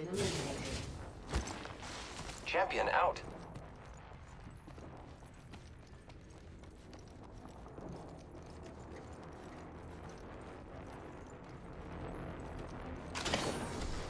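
Footsteps thud quickly on hard ground and metal.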